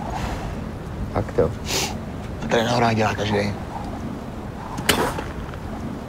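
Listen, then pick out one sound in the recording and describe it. A middle-aged man speaks outdoors.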